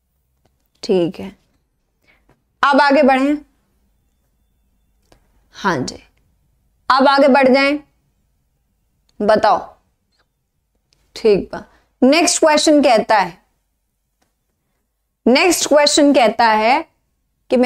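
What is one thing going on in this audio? A young woman speaks with animation into a close microphone, in short bursts.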